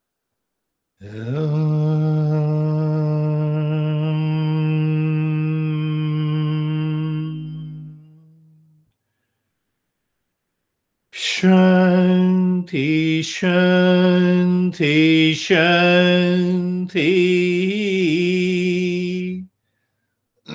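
An elderly man chants long, steady notes through an online call.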